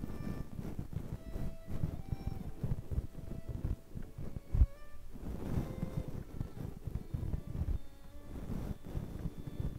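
A brush scratches and rustles through hair close by.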